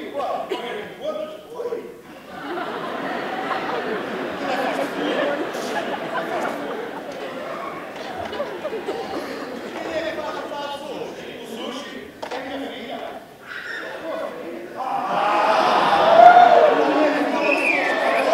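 A man speaks theatrically through a microphone in a large hall.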